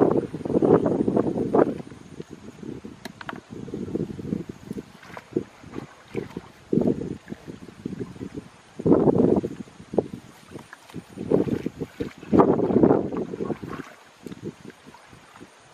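Water splashes as a basket scoops through a shallow pond.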